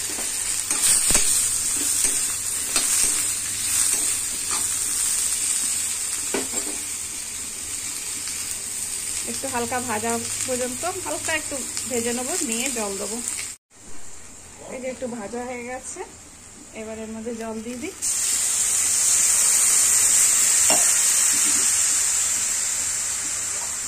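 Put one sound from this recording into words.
Vegetables sizzle and crackle in a hot pan.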